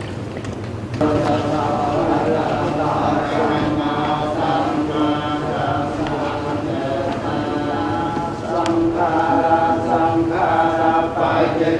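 A group of men chant together in low, steady voices.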